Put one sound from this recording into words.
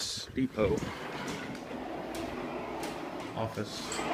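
Automatic glass doors slide open.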